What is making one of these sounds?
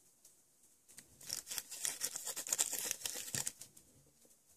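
A sheet of thin paper crinkles and rustles up close.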